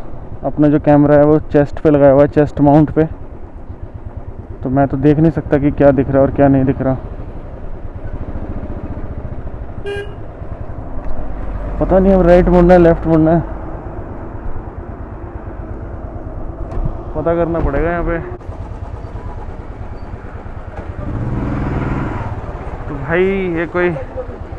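Vehicle horns honk loudly in repeated bursts.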